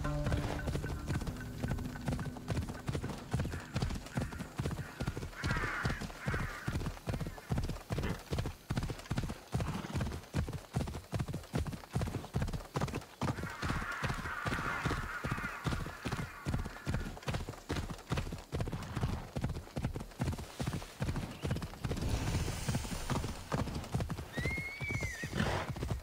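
Horse hooves gallop quickly and steadily on dirt.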